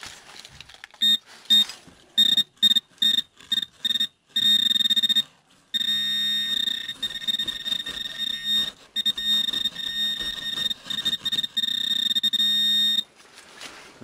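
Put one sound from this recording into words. A metal detector beeps and whines in short bursts, then in a long steady tone.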